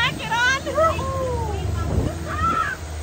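A young woman laughs with excitement close by.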